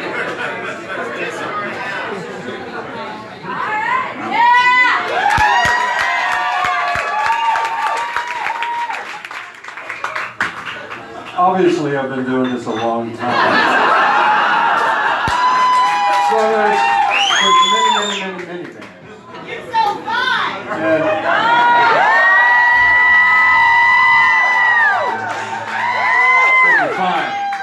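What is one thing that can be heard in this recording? A live band plays rock music on amplified guitars, heard from within the crowd.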